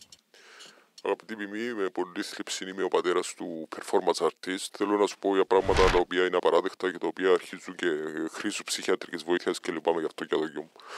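A man speaks animatedly close by.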